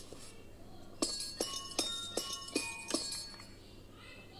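A keyboard plays a quick melody.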